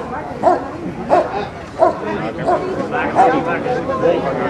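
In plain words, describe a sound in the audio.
A dog barks sharply several times.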